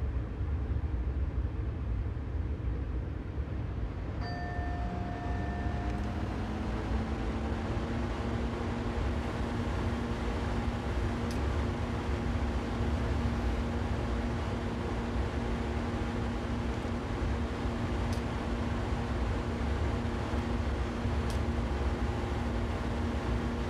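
An electric train rumbles steadily along the rails.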